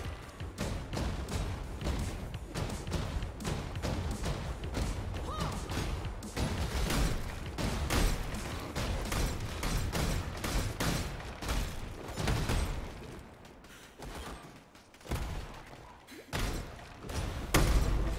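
Spell blasts and magic impacts crackle and boom in rapid bursts.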